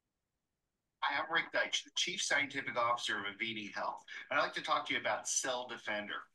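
A man speaks calmly and clearly through a recording played in an online call.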